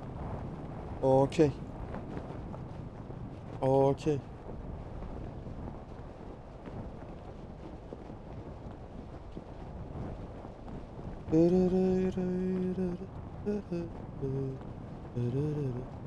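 A young man speaks into a microphone close by, in short bursts.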